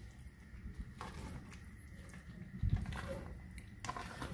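A spoon scrapes and stirs in a pan.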